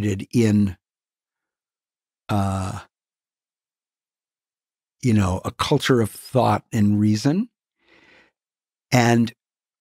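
An elderly man speaks with animation into a nearby microphone, in short bursts with pauses.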